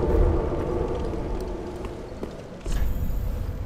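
Flames roar and slowly fade.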